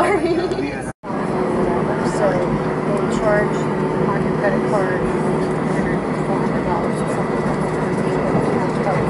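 Jet engines roar louder as a plane speeds down the runway.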